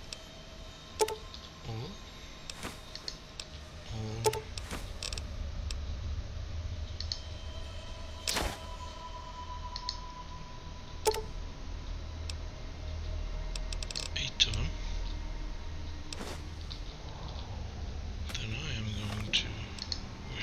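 Short game menu clicks and blips sound now and then.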